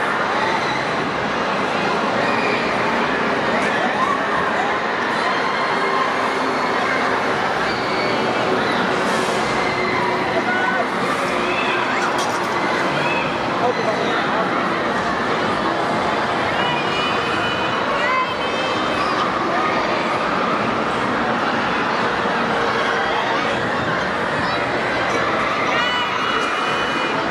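A crowd chatters and shouts, echoing through a large indoor hall.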